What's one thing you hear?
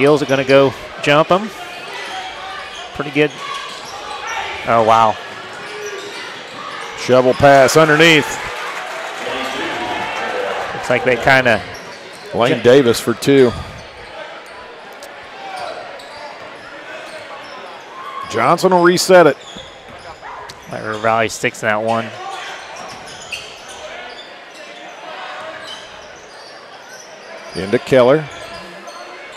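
A large crowd murmurs in an echoing gym.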